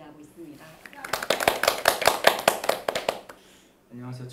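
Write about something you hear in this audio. People clap their hands briskly.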